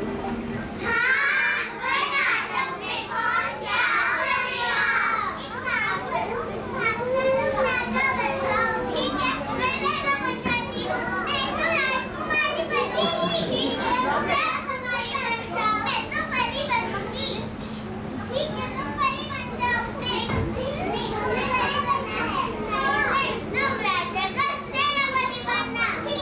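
Young children speak and chatter in an echoing hall.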